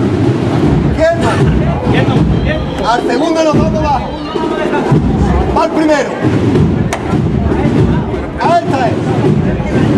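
Men call out and shout to one another close by.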